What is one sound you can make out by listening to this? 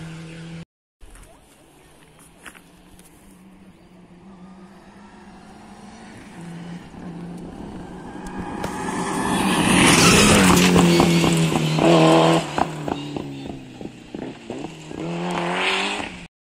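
A rally car roars past close by at full throttle, then fades away.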